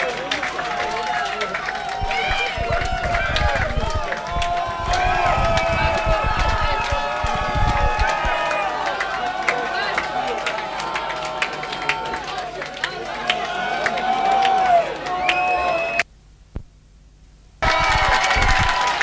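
An electric guitar plays loudly through amplifiers.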